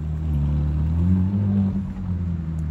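A sports car engine revs up briefly.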